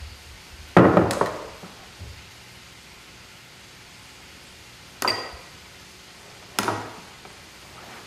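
Food clatters and scrapes against a metal pan.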